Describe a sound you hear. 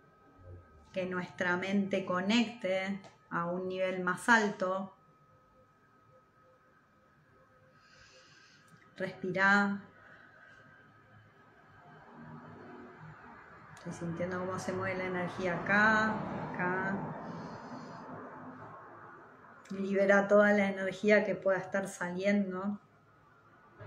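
A woman speaks softly and calmly, close up, in short phrases with pauses.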